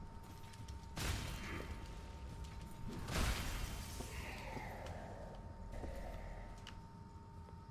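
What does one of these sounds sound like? Heavy weapon blows strike and slash with loud impacts.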